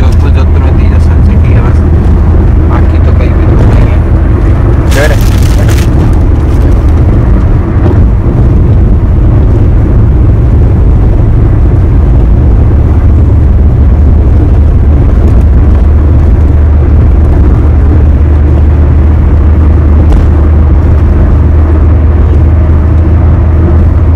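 A car engine hums steadily as the car drives along a highway.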